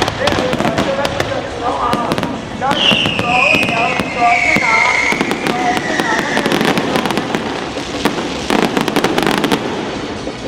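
Fireworks bang and pop in quick succession.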